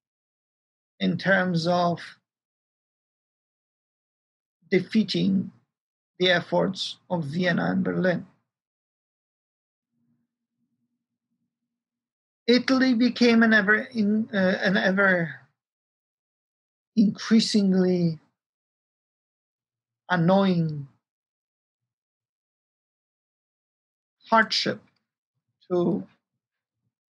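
A middle-aged man speaks calmly in short phrases, heard through an online call.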